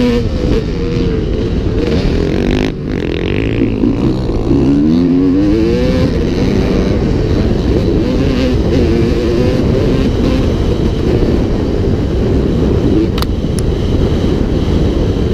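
A dirt bike engine roars loudly up close, revving up and down.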